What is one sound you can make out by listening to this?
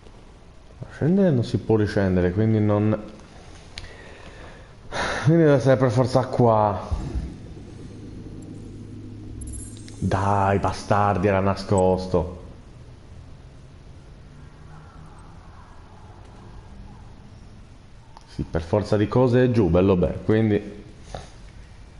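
A man talks calmly into a close microphone, in bursts with pauses.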